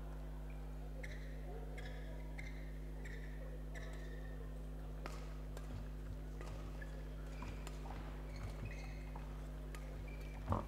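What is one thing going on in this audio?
Sports shoes squeak on a hall floor.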